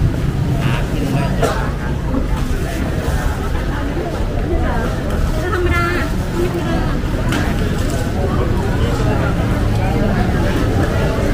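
Footsteps shuffle on pavement close by.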